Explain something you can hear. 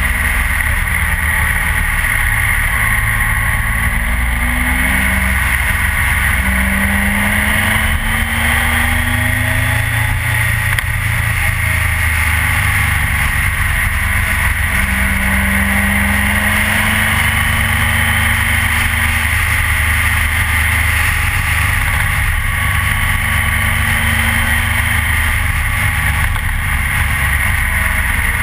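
A motorcycle engine hums steadily up close, rising and falling in pitch as it changes speed.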